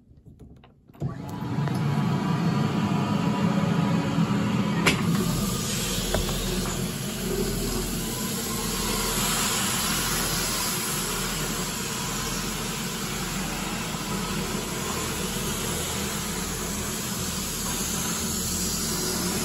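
A floor scrubbing machine starts up and runs with a loud, steady whirring hum.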